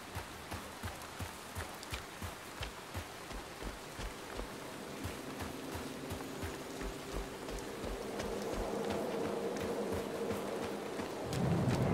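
Footsteps thud quickly and evenly on soft ground.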